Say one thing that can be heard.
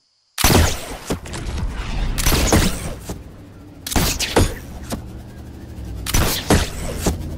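Building pieces clatter into place in loud bursts.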